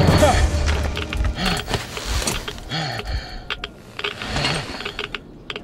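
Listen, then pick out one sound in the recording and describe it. A monster snarls and roars loudly.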